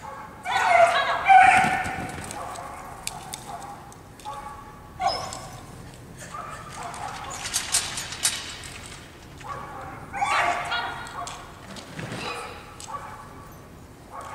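A woman calls out commands loudly, echoing in a large hall.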